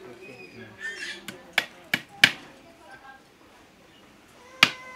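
A hammer taps sharply on wood.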